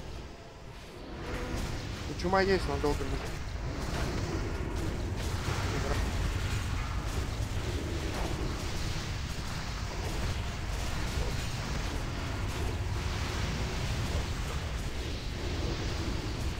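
Spells whoosh and crackle in a busy game battle.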